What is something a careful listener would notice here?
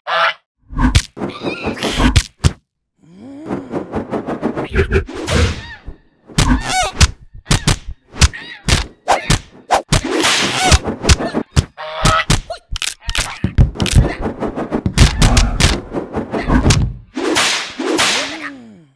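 Wings flap and thrash in a scuffle.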